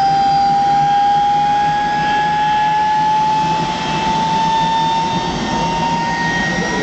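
A low engine rumble roars steadily outdoors.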